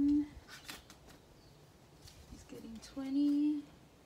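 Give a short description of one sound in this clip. Paper banknotes rustle and flick in hands.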